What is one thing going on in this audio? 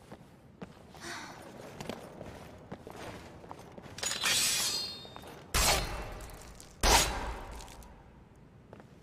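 Thick cobwebs crackle and tear.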